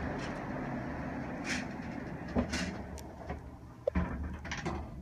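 Elevator doors slide shut with a thump.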